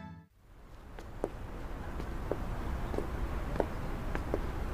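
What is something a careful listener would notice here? Footsteps walk slowly along a path.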